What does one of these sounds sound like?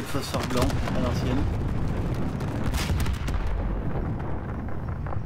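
A large explosion booms and rumbles.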